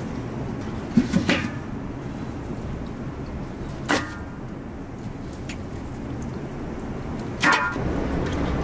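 Chunks of meat thud into a metal pot.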